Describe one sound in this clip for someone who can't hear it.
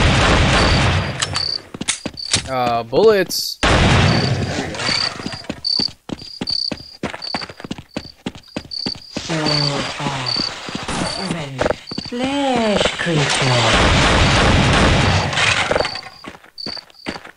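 Footsteps thud steadily across soft ground.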